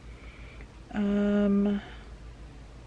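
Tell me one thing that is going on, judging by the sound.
A woman groans in a drawn-out, pained tone.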